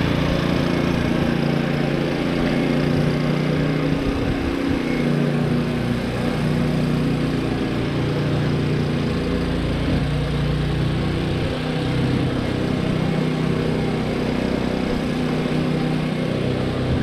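A lawnmower engine drones steadily nearby, outdoors.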